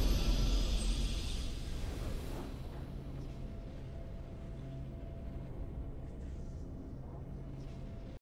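A triumphant game fanfare swells, then slowly fades into a low drone.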